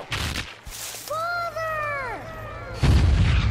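A boy cries out in distress.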